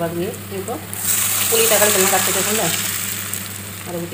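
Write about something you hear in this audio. Liquid pours into a metal pan and splashes.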